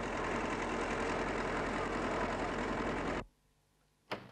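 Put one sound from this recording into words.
A television plays a man's voice through a small loudspeaker.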